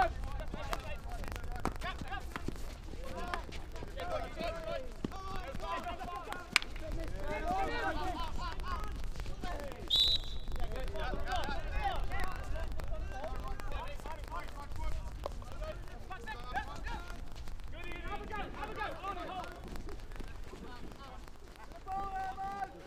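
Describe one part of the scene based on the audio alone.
Players shout and call to each other across an open outdoor pitch.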